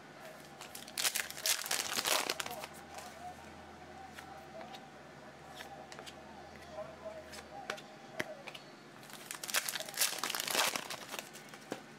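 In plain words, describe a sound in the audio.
Plastic-sleeved trading cards slide and rustle against each other.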